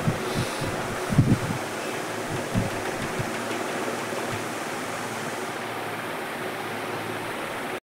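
Water bubbles and hisses steadily from an air pump.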